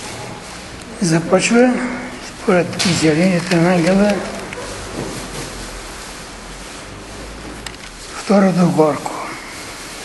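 An elderly man reads aloud.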